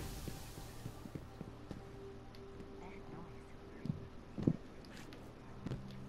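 Footsteps run quickly over a hard floor.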